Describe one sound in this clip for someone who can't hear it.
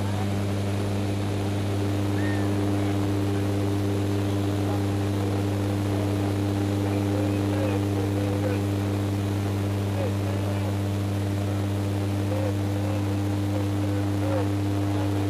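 Air rushes past the cabin.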